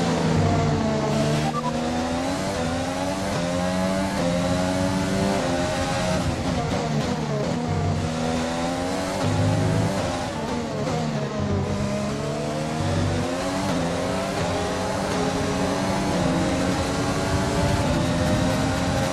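A racing car engine screams loudly, rising in pitch as it speeds up and dropping as it shifts gear and slows.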